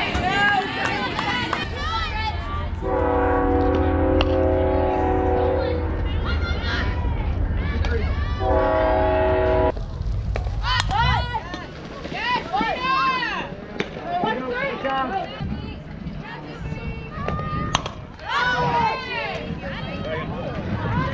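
Spectators cheer and shout from the sidelines outdoors.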